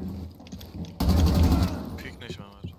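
A burst of rapid gunfire rings out.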